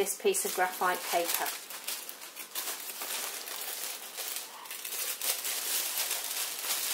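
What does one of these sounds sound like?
A sheet of paper rustles and crinkles close by.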